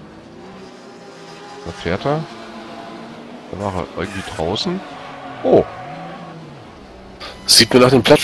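Racing car engines drone steadily and rev up and down.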